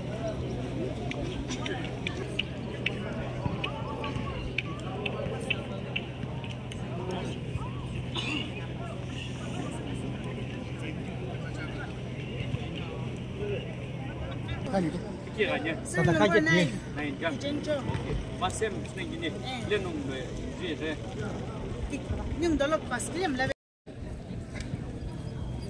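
Men and women chatter in a crowd outdoors.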